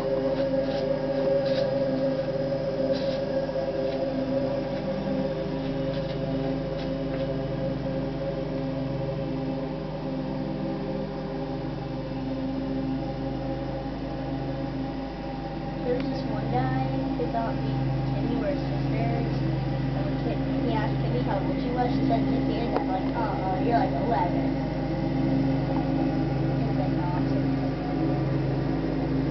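A riding lawn mower engine runs as the mower drives across grass.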